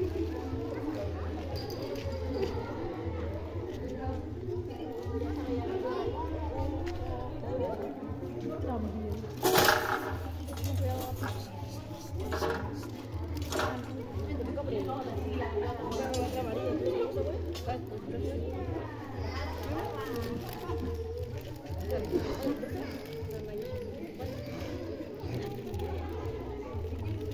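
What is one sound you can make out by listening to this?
Children and women chatter and call out nearby, outdoors.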